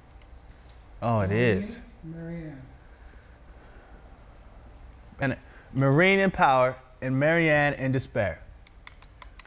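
A young man speaks calmly and close to a microphone, in short phrases.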